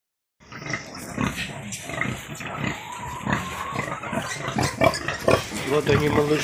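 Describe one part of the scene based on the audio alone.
A sow grunts low and slowly.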